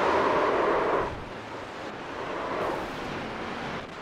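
Tyres screech as a car spins out.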